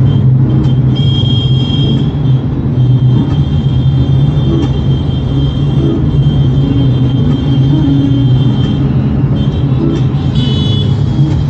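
Tyres roll on the road.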